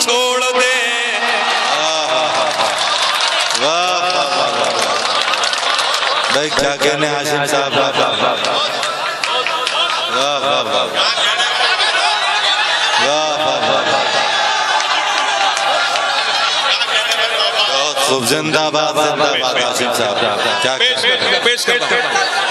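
A man recites with feeling through a loudspeaker.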